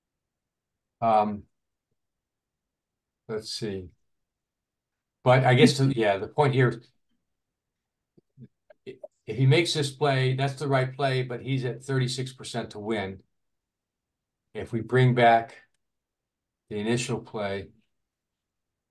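An adult man talks calmly into a close microphone, in short bursts with pauses.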